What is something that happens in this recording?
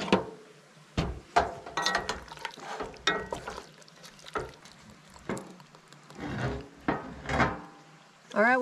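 A wooden spoon stirs pasta and knocks against a metal pot.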